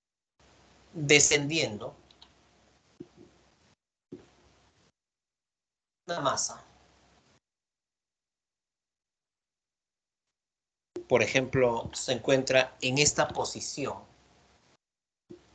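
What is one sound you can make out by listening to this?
A man speaks calmly into a microphone, heard through an online call.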